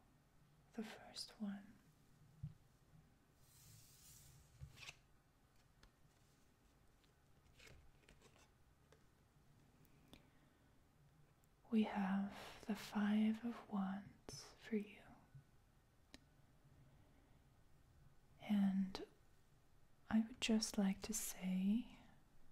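Playing cards slide and tap softly on a wooden table.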